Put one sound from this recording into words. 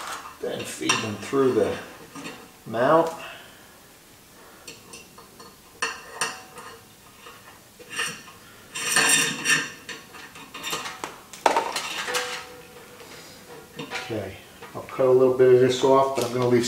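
A man speaks calmly close by, explaining.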